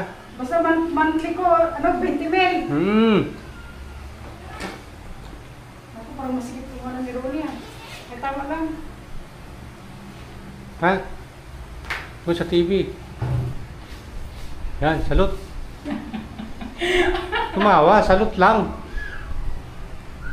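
A middle-aged woman talks nearby with animation.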